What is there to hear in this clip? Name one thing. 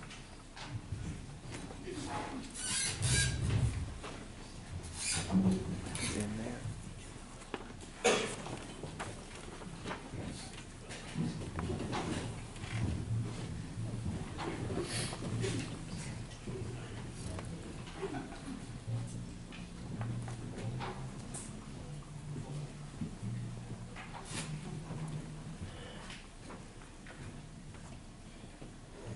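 A concert band plays in a large echoing hall, heard from the audience.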